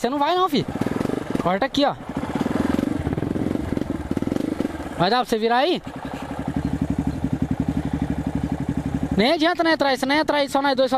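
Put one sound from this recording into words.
A single-cylinder four-stroke trail bike engine chugs at low revs.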